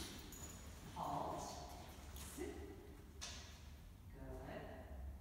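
A man calls out short commands in a large echoing hall.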